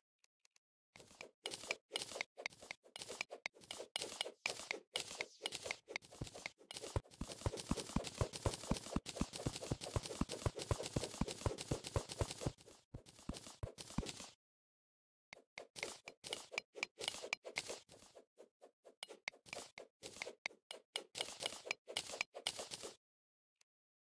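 A pickaxe chips rapidly at stone blocks with quick, repeated taps.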